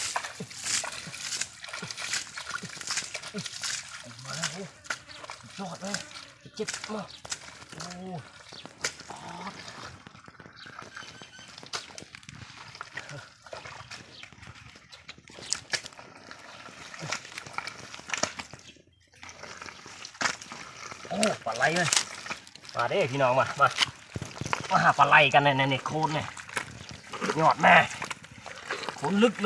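Hands squelch and splash in thick wet mud.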